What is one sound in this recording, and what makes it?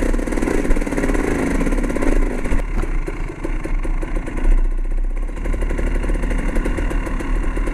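Wind rumbles across a microphone while riding.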